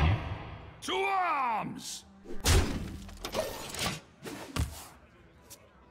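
Game sound effects whoosh and chime in short bursts.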